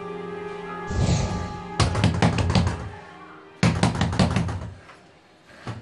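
A hand knocks loudly on a door.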